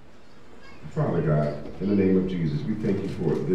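A man speaks into a microphone over a loudspeaker.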